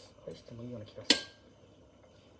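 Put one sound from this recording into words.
A metal grill lid clanks shut.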